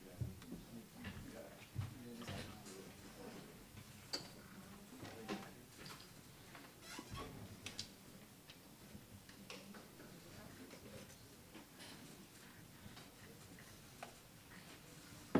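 Men and women chatter quietly in the background of a room.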